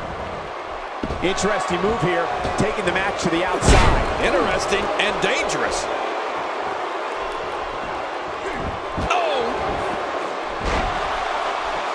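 Heavy thuds land as wrestlers slam onto the mat.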